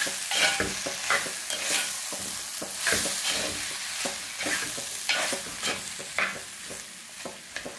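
A spatula scrapes and stirs food against the side of a clay pot.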